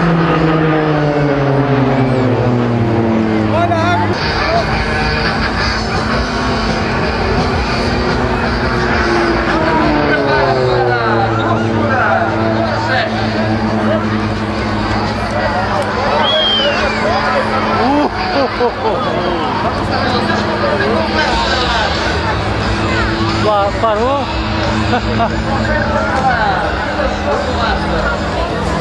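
A propeller plane's engine roars overhead, rising and falling in pitch as it passes.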